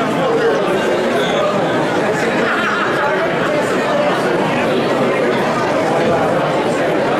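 A crowd of people chatter loudly nearby.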